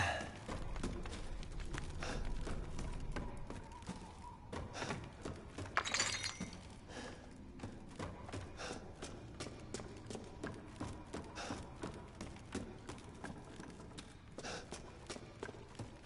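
Footsteps thud on creaking wooden stairs and boards.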